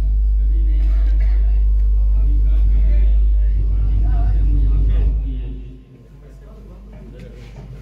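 A man speaks into a microphone through a loudspeaker, in an echoing room.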